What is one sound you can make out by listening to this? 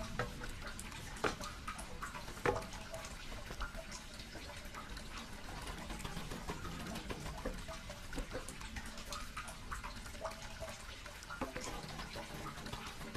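A thin stream of water pours steadily into a bucket.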